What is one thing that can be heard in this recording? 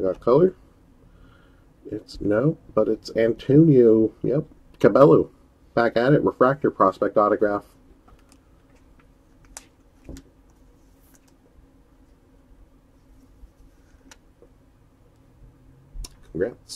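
Trading cards in plastic holders click and rustle as they are handled.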